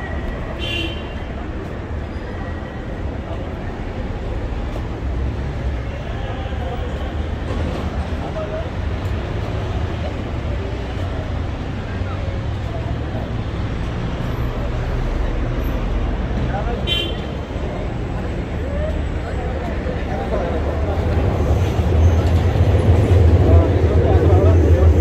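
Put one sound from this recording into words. Traffic rumbles steadily along a nearby road outdoors.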